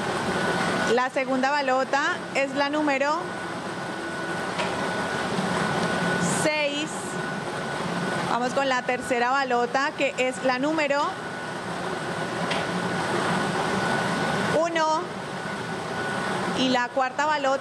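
A young woman announces through a microphone with animation.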